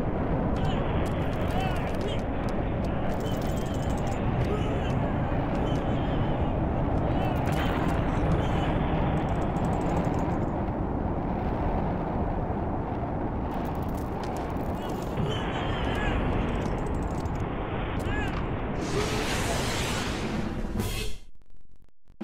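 Explosions boom in rapid succession.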